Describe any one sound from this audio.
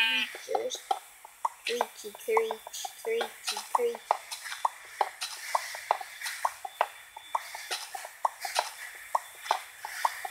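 A pickaxe taps repeatedly against stone blocks.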